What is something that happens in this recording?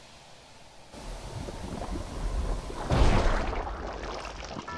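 Bursts of smoke whoosh out with a rumble.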